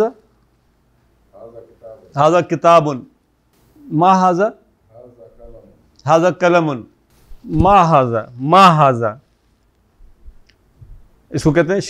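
An elderly man speaks slowly and clearly, teaching, in short phrases with pauses.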